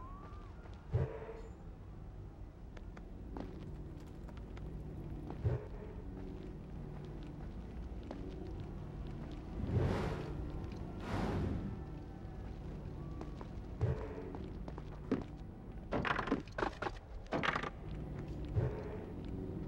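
Feet land with heavy thuds.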